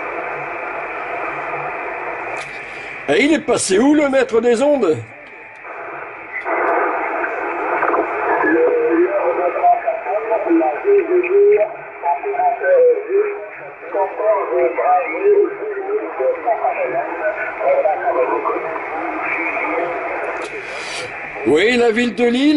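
A man speaks over a radio with a narrow, crackly tone.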